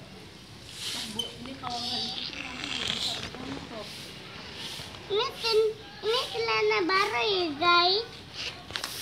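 A young child talks and squeals in a high voice close by.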